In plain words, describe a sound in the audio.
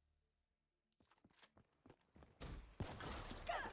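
Rapid gunfire rings out.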